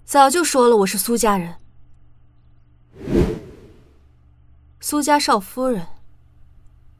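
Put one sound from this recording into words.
A young woman speaks clearly and firmly, close by.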